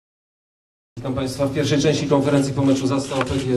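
A middle-aged man reads out calmly into a microphone.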